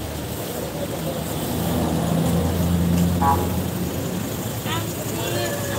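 People talk nearby in a street crowd.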